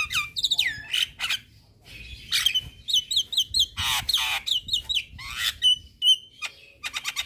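A bird sings loud, varied whistles and chirps close by.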